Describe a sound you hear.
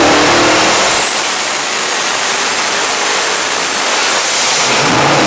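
A turbocharger whistles high and steady.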